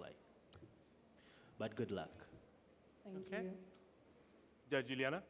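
A young woman speaks calmly in short phrases close to a microphone.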